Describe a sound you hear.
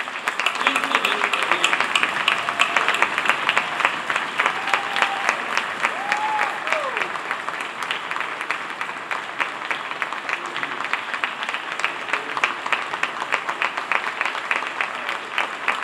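An audience claps and applauds steadily in a large hall.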